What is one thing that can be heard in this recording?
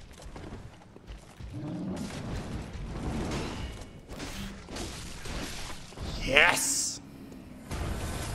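Blades clash and slash in quick strikes.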